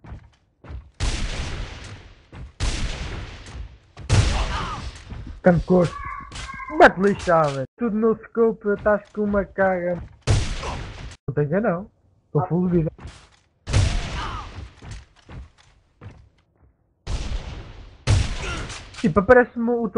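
A sniper rifle fires loud single shots that ring out with a short echo.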